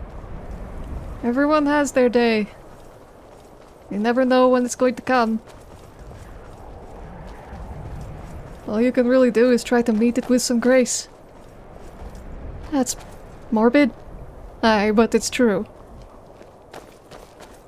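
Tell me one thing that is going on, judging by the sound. Footsteps crunch on gravel and stone at a steady walking pace.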